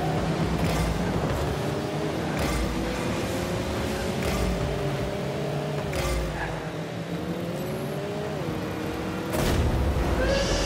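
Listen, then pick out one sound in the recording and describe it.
A small car engine hums steadily, its pitch rising and dropping as it speeds up and shifts.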